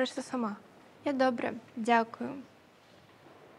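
Another young woman answers briefly and calmly.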